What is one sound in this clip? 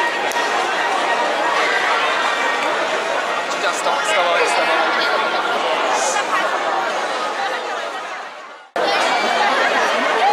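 A large crowd of people chatters and calls out outdoors.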